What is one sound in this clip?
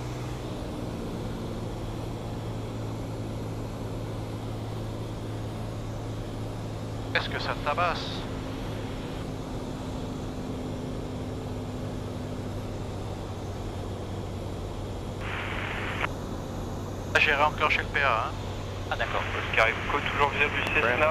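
A small aircraft engine drones steadily.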